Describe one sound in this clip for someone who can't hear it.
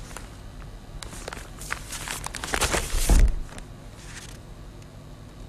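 Newspaper pages rustle and crinkle loudly as they are folded.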